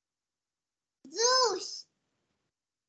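A young child answers over an online call.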